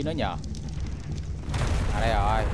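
A loud magical burst whooshes out.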